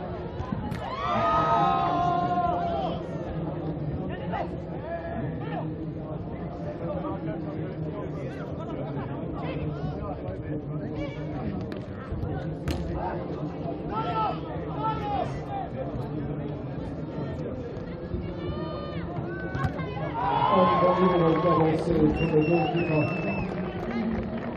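Men shout to each other across a pitch.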